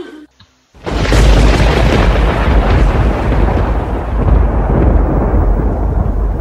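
Thunder cracks loudly and rumbles on with a deep roar.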